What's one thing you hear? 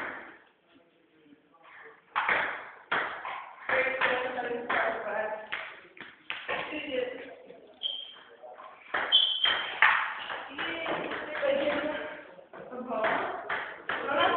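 A table tennis ball clicks against paddles and the table in a quick rally.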